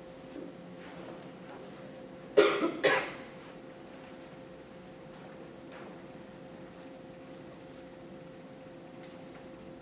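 Footsteps walk slowly across a hard floor in a large room.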